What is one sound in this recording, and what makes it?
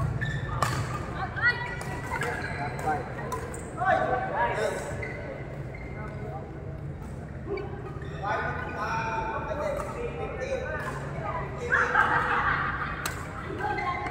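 Young players call out and chat in a large echoing hall.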